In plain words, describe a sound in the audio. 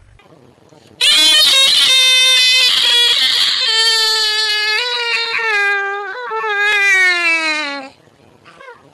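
A young boy sings a long, falling tune close by.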